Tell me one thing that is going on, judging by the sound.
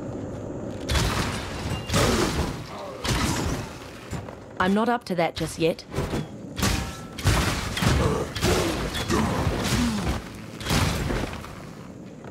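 Magic spells crackle and burst during a fight.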